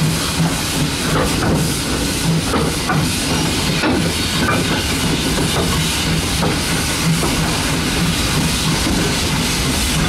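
Steam hisses loudly from a steam locomotive.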